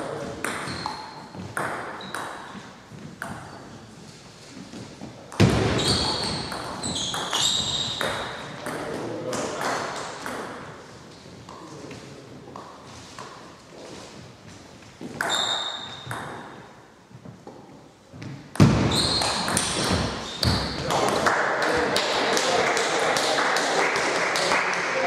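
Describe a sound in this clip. A table tennis ball clicks back and forth between paddles and table in an echoing hall.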